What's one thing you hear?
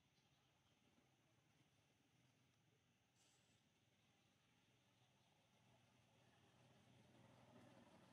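A baby monkey suckles softly.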